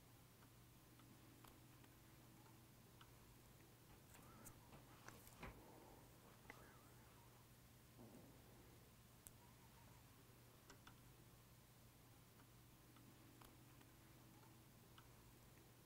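A small metal tool clicks faintly.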